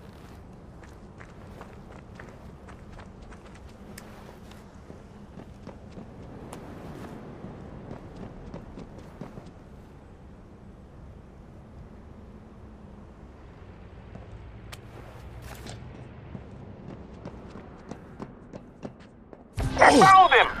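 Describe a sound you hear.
Soft footsteps scuff along quietly.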